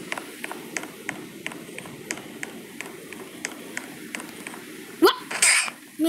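Quick, light footsteps patter steadily.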